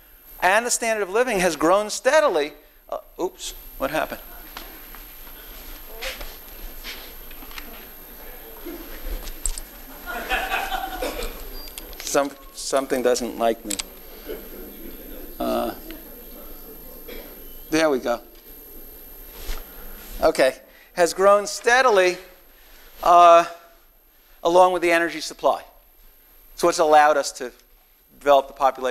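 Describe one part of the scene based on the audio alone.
An older man speaks calmly through a microphone in an echoing hall.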